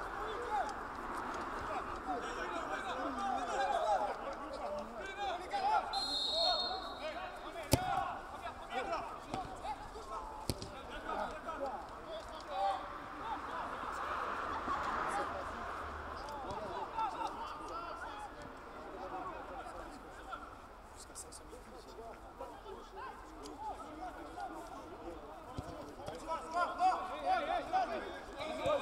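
Men shout and call to each other across an open outdoor pitch.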